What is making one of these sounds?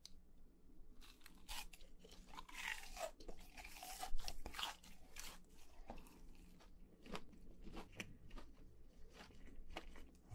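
Crispy fried food crunches loudly as a young man chews close to a microphone.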